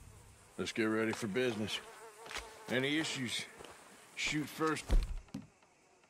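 A man speaks calmly and gruffly, close by.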